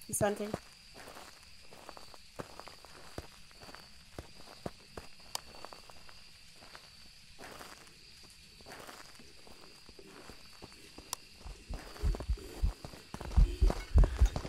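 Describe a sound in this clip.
Water laps gently against a shore.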